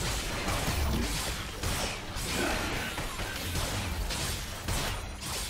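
Magic spells whoosh and crackle in a fast video game fight.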